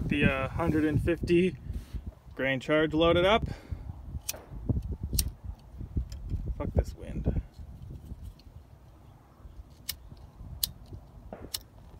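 Metal parts click and clink as a bolt is tightened by hand.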